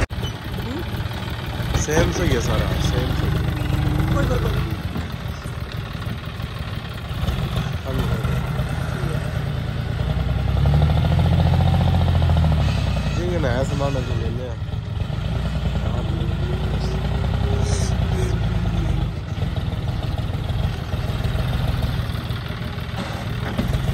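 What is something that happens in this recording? Tractor diesel engines rumble steadily close by.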